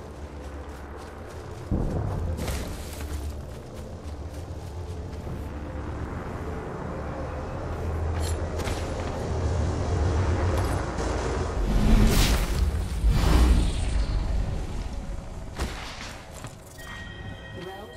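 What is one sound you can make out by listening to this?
Footsteps run quickly across hard floors.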